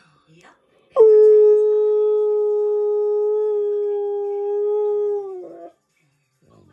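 A dog howls loudly in a long, steady note.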